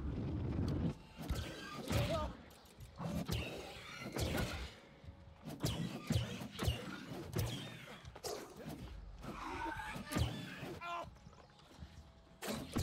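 Magic spells crackle and burst in a game fight.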